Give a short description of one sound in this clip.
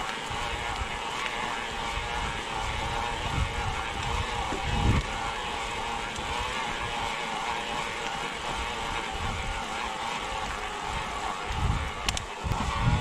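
Bicycle tyres roll steadily over a paved path.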